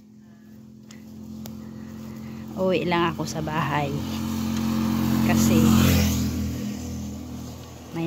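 A motorbike engine approaches, passes close by and fades away.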